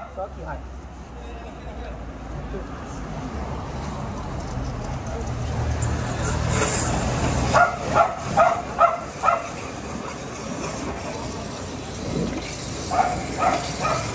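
Water gushes from a hose into a drain.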